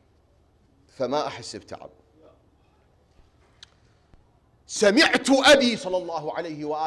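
A man speaks emphatically into a microphone, with pauses between phrases.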